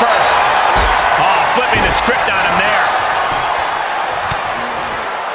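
Bodies slam heavily onto a wrestling ring.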